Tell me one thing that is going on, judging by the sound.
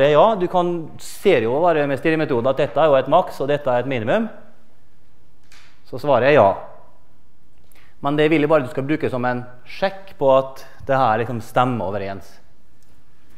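A middle-aged man lectures with animation through a microphone in a large echoing hall.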